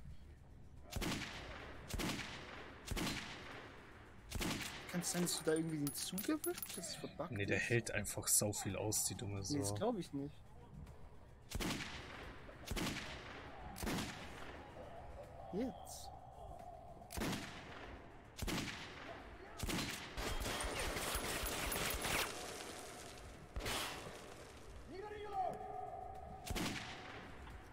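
Single rifle shots ring out one at a time, each with a short echo.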